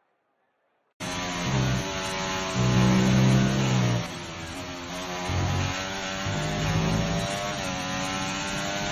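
A racing car engine roars and whines through gear changes.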